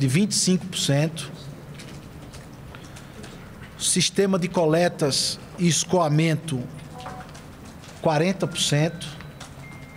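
A young man speaks calmly into microphones, pausing between phrases.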